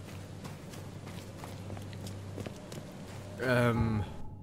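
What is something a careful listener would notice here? Footsteps crunch through dry grass.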